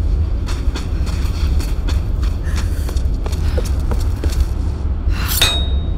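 Footsteps crunch on stone at a steady walk.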